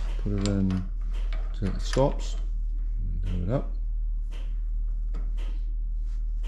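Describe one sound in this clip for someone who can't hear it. A metal drill bit clinks and scrapes against a lathe chuck.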